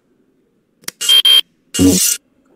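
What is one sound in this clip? A laser cutter buzzes against glass.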